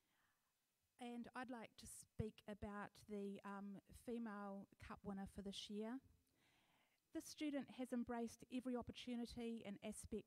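An older woman speaks calmly over a loudspeaker.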